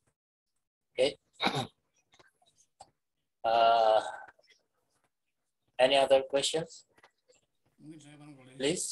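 An older man speaks calmly over an online call, in short bursts with pauses.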